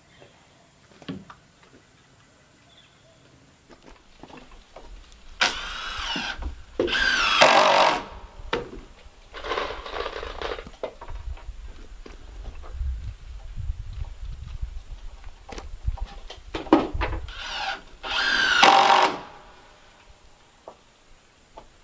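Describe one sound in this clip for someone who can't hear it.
Wood knocks and thuds as boards are handled.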